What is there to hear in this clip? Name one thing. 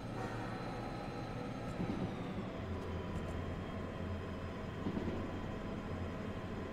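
A train engine rumbles steadily.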